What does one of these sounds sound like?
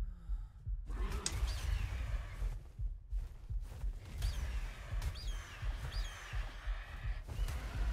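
A large flying creature screeches several times.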